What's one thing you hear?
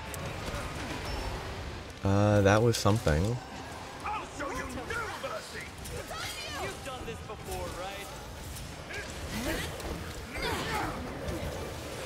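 Blades slash and clang against a large beast's hide.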